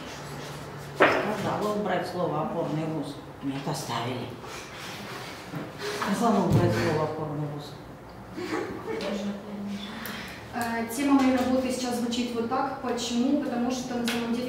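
A young woman speaks calmly, giving a talk.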